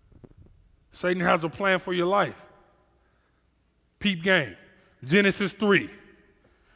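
A man speaks with animation through a microphone, in short emphatic bursts.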